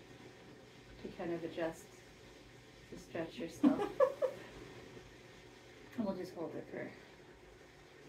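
A young woman laughs and talks.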